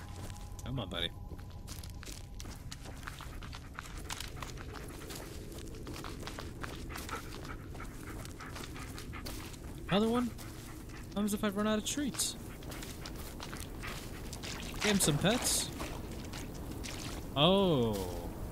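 Footsteps crunch slowly over dry leaves and twigs.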